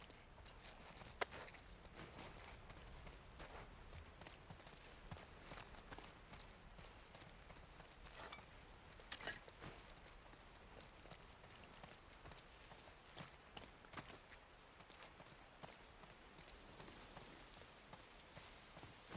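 Footsteps crunch softly over debris and grit.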